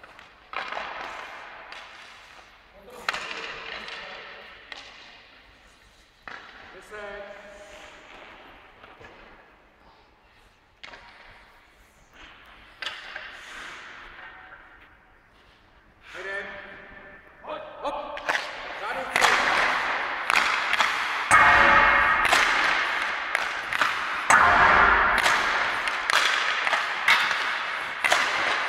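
Hockey sticks slap pucks, the sharp cracks echoing around a large ice rink.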